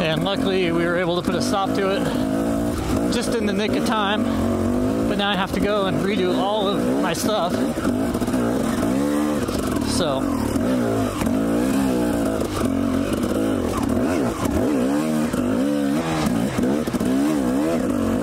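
A dirt bike engine revs up and down close by, rising and falling constantly.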